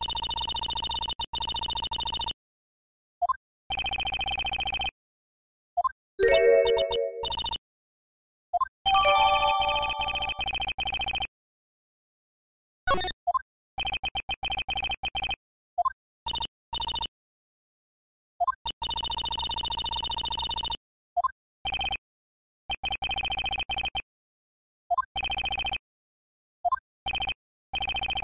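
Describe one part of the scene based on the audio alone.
Quick electronic blips chatter in bursts.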